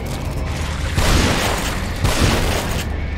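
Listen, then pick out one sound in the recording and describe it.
A pistol fires twice, loud and close.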